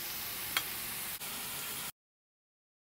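Meat sizzles in a hot pan.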